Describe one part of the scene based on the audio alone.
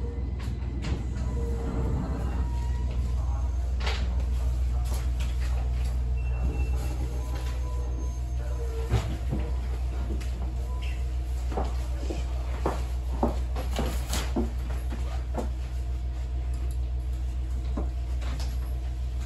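Train carriage fittings click and rattle.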